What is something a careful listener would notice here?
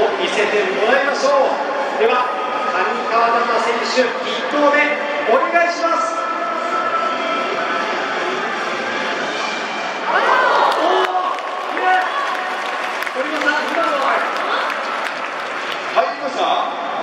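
A man speaks through a microphone over loudspeakers, echoing in a large open stadium.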